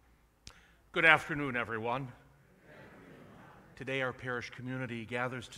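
An older man chants aloud through a loudspeaker in a large echoing hall.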